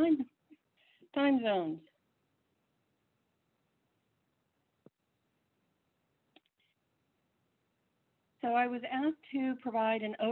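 An elderly woman speaks calmly over an online call.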